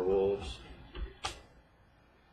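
A card brushes and clicks against a stack of cards.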